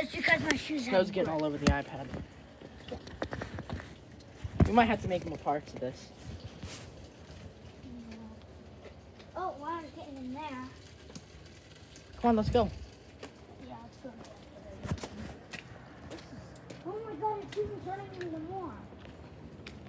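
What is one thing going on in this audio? A young child shouts and talks excitedly nearby.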